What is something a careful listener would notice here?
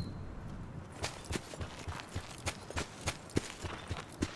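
Quick footsteps patter on dry ground.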